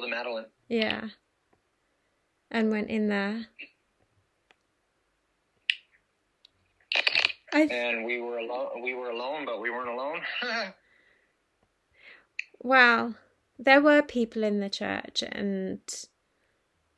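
A woman talks cheerfully over an online call.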